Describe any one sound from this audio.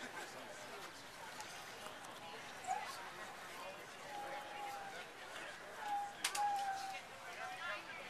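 Adult men and women murmur quietly outdoors.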